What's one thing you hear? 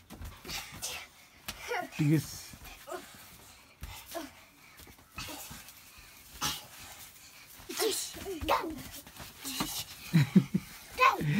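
Young children laugh and shriek playfully close by.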